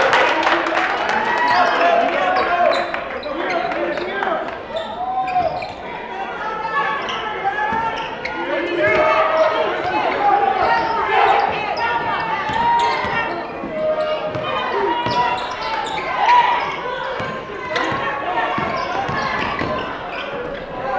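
A crowd chatters and murmurs in a large echoing gym.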